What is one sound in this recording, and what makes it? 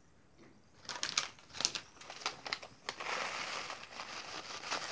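A paper packet rustles as powder is poured.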